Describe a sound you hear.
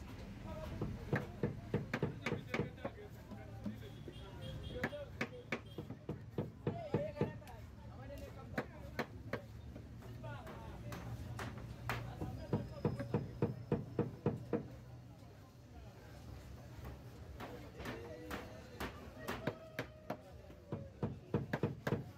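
A hammer knocks repeatedly on wood close by.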